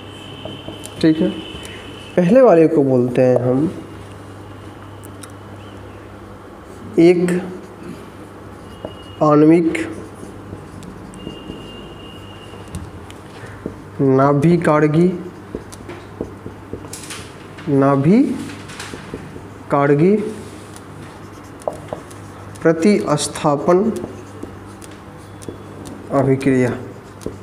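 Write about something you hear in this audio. A man speaks in short bursts, close by in a slightly echoing room.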